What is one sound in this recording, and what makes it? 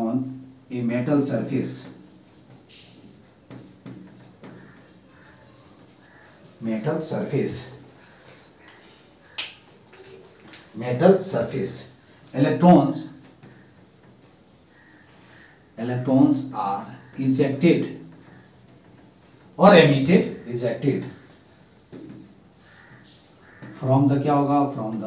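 A man speaks calmly in short bursts, as if explaining.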